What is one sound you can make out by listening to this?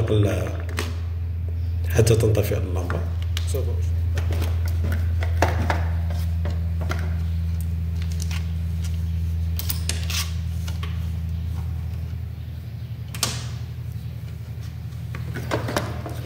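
Wires rustle and tap against a metal case.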